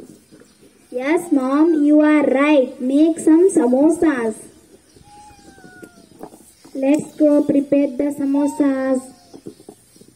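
Young girls sing together into a nearby microphone, in two short bursts.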